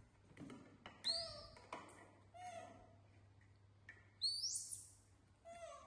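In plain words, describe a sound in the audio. Young monkeys squeal shrilly.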